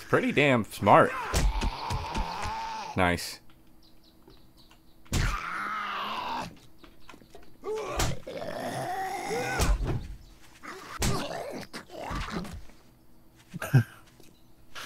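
Fists thud against a zombie in heavy blows.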